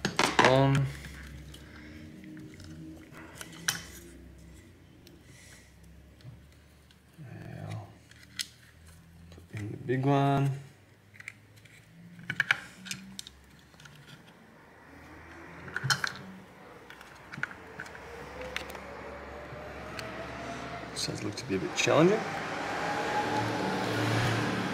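Plastic parts click and rattle as hands take apart a small device.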